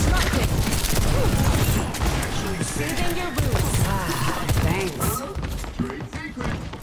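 A gun fires rapid bursts of shots.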